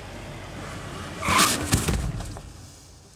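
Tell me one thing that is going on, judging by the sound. A seatbelt buckle clicks shut.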